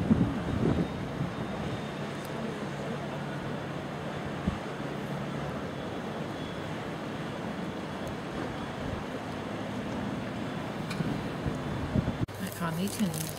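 A large ship's engine hums low and steady across the water.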